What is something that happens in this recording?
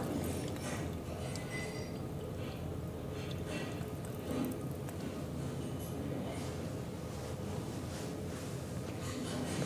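A stream of liquid trickles into a urinal.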